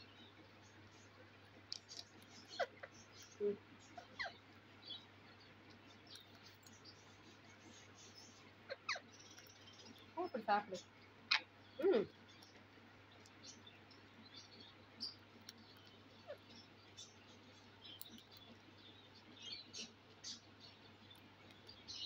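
A rose-ringed parakeet cracks sunflower seeds.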